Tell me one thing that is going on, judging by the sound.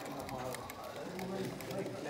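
A small model train rattles along its tracks.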